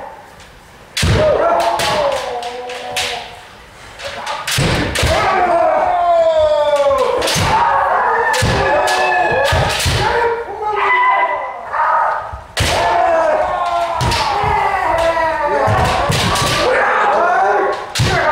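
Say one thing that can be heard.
Kendo fencers shout loud battle cries in a large echoing hall.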